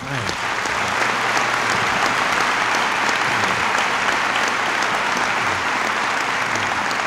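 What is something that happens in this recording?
A large crowd applauds and cheers steadily.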